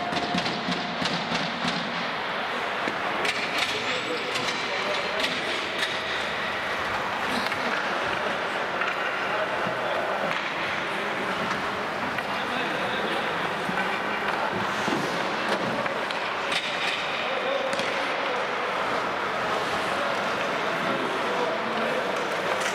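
Young men call out to each other in a large echoing hall.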